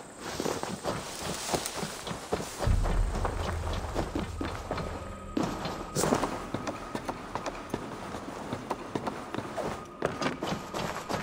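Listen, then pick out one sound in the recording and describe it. Footsteps walk on stone.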